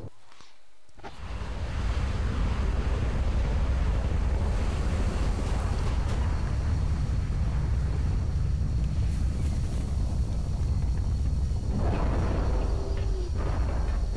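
A spaceship's engines roar with a deep, steady rumble.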